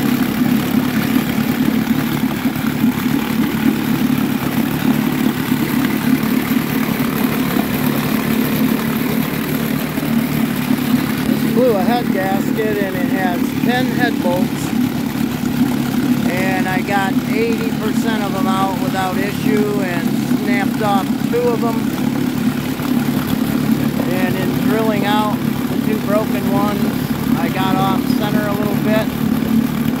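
An outboard motor idles with a steady, rumbling drone.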